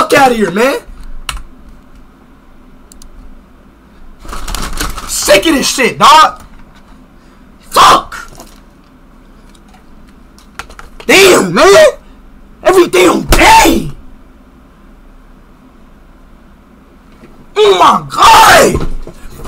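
A young man shouts loudly and excitedly into a close microphone, in short bursts.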